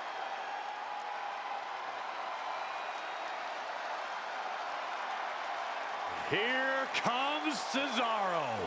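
A large arena crowd cheers steadily.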